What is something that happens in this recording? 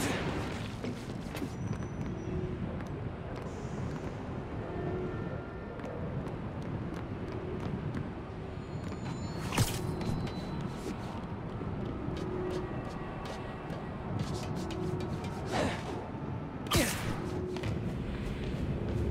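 Footsteps and hands thud softly while climbing.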